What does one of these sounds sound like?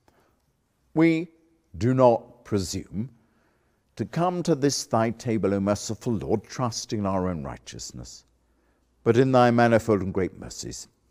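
An elderly man speaks slowly and solemnly, reciting a prayer.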